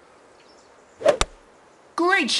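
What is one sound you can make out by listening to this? A golf ball is struck with a sharp whack.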